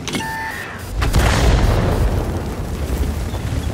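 A loud explosion booms and crackles.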